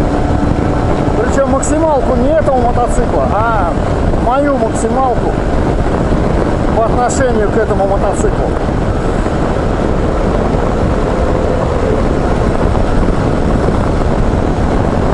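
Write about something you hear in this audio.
Wind buffets loudly against the rider at speed.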